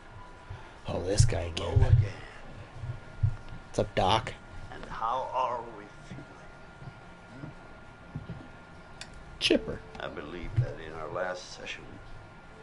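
A middle-aged man speaks calmly and softly, close by.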